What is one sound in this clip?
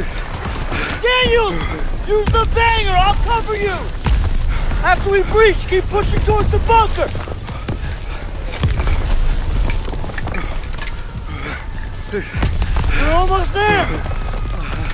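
A young man shouts urgently, close by.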